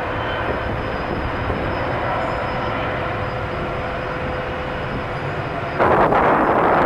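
Jet engines roar loudly as an airliner climbs away after takeoff.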